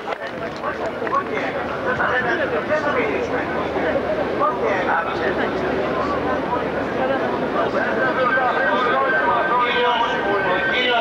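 A man speaks loudly into a microphone, heard through loudspeakers.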